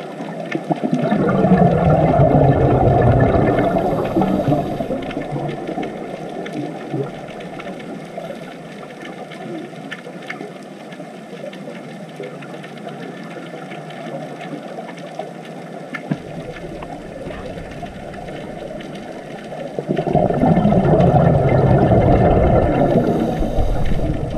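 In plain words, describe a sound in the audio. Scuba bubbles gurgle and rumble underwater in bursts.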